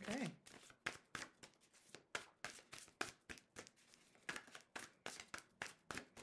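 Playing cards shuffle and snap close by.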